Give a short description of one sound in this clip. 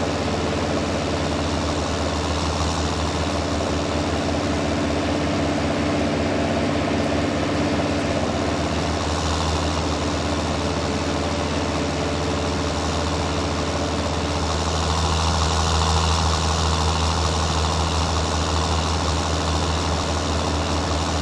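A hay baler clatters and whirs as it is towed.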